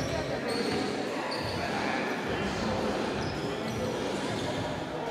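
Players and spectators murmur and call out in a large echoing gym.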